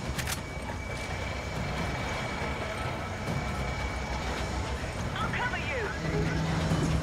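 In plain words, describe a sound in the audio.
Heavy footsteps clank on a metal grating.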